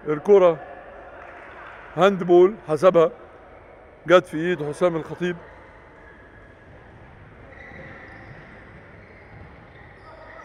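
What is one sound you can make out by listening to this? Sneakers squeak on a hard indoor court.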